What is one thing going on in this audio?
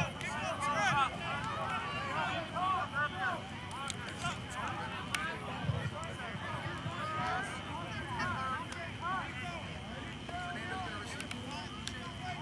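A crowd of people talks and calls out in the distance.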